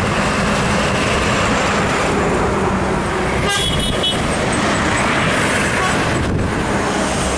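A bus engine roars as the bus passes close by.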